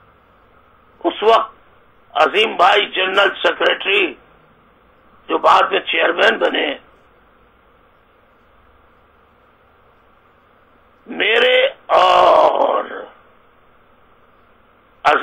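A middle-aged man speaks calmly into a microphone, in bursts with pauses.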